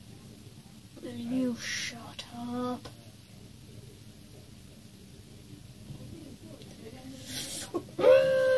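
A boy speaks close by, with animation, in short bursts.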